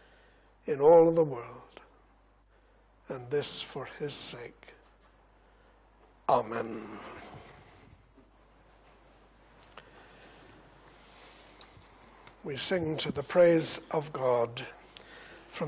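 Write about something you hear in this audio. An older man reads aloud slowly into a microphone, with pauses.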